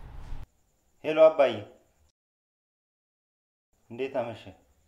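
A man speaks calmly on a phone.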